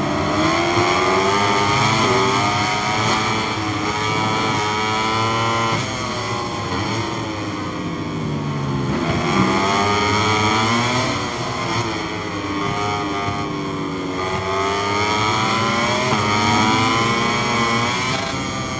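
Motorcycle engines whine and rev up and down as they race past.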